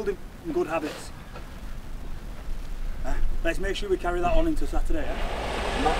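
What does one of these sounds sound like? A man speaks loudly to a group close by.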